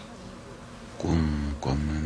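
A man speaks in a low voice, close by.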